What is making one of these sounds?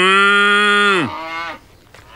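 A man calls out loudly through cupped hands, in a long drawn-out cry.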